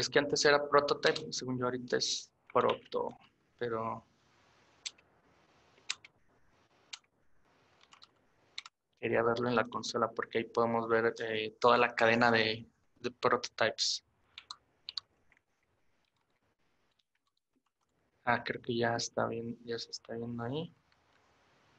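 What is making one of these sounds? A young man talks calmly into a microphone, in short bursts.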